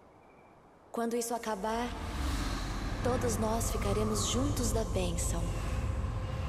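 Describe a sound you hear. A young woman exclaims with animation through a microphone.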